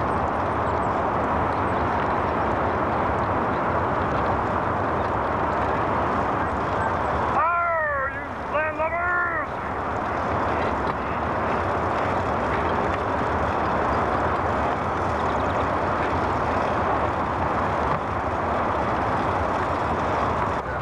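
A small motor vehicle engine hums steadily.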